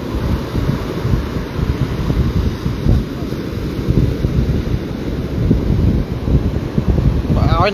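Waves crash and wash up onto a beach.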